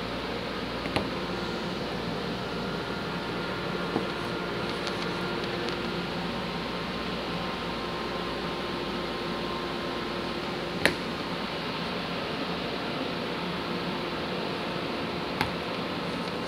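Small wooden pieces click softly against a wooden board.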